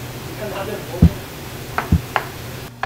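A knife chops on a plastic cutting board with sharp knocks.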